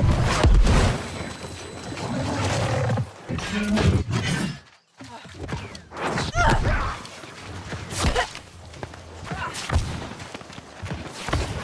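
A large reptile growls.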